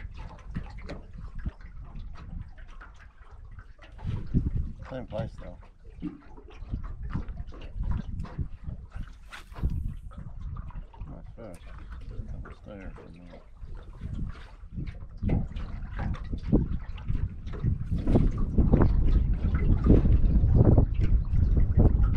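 Wind blows steadily across open water.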